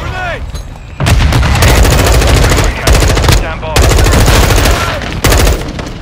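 A rifle fires rapid bursts of gunfire.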